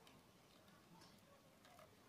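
Water pours in a thin stream.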